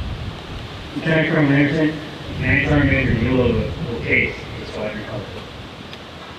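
A man calls out commands loudly, heard outdoors.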